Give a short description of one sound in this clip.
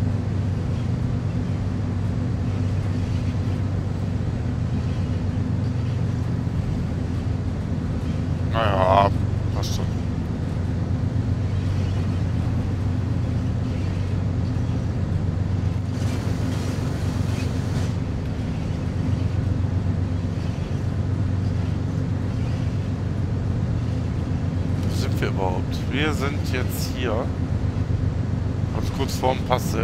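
A diesel locomotive engine rumbles low and steady.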